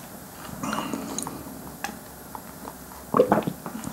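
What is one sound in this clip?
A man slurps a drink through a straw up close.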